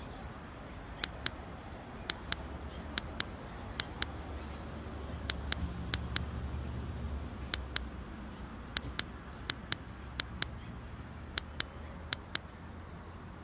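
Short, crisp clicks sound again and again as puzzle pieces turn.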